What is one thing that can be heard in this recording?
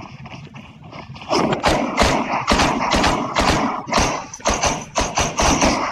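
Footsteps run across a wooden floor.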